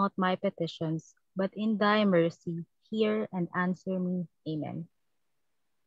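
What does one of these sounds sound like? A woman reads out calmly over an online call.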